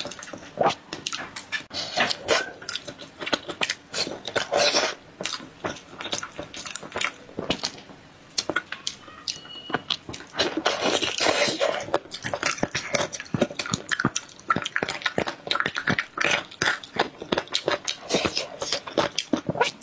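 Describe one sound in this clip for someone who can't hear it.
A young woman chews food noisily close to a microphone.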